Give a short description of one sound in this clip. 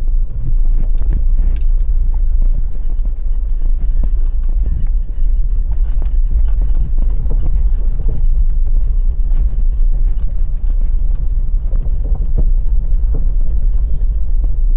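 Tyres roll over the road.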